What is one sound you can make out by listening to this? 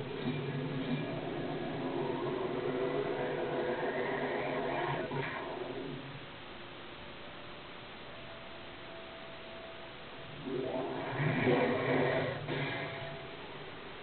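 A magical blast roars and crackles through a small speaker.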